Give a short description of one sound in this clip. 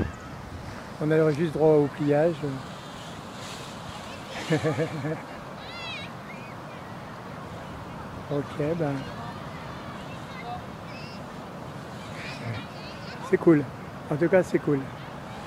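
Young children call out and chatter nearby.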